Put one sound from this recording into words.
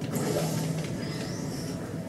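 A video game portal gun fires with a whoosh, heard through a television speaker.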